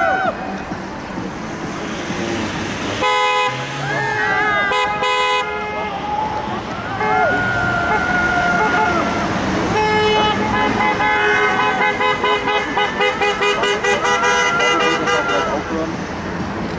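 Cars drive past on a street outdoors.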